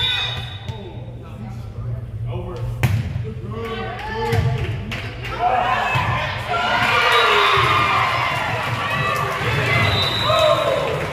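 Young women shout and call out to each other in an echoing gym.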